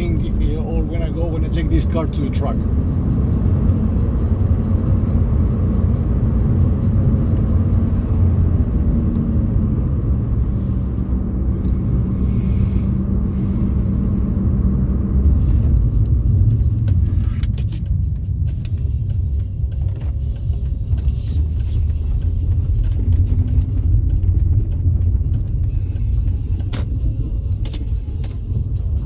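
A car engine roars loudly from inside the cabin as the car accelerates hard.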